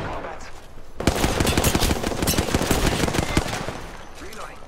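A rifle fires rapid bursts of shots up close.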